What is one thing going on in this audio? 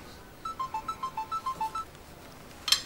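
A phone's keypad beeps as buttons are pressed.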